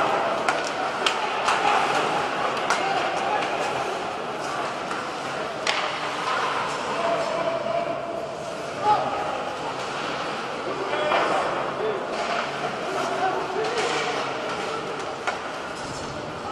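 A small crowd murmurs and calls out in a large echoing arena.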